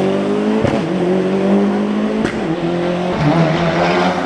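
A rally car accelerates uphill away into the distance.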